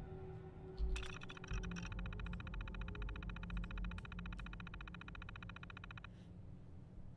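A computer terminal chirps and buzzes quickly as text prints out.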